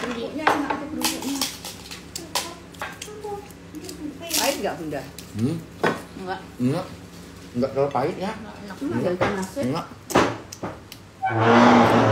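A woman smacks her lips while chewing food close by.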